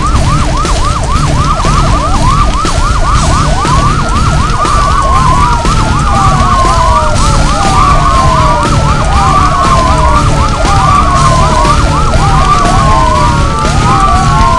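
Many sirens wail, overlapping and rising and falling quickly.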